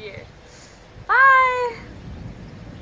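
A young woman calls out a cheerful farewell.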